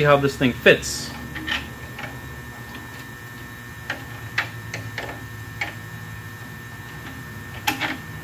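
Small metal parts click and tap together.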